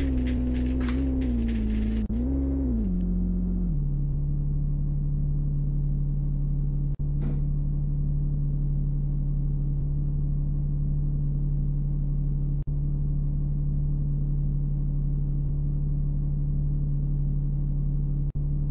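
A bus engine hums loudly, its pitch dropping as the bus slows, then settles into a steady idle.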